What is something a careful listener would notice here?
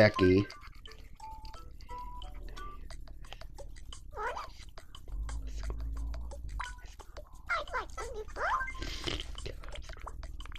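A handheld game console plays short electronic chimes and beeps.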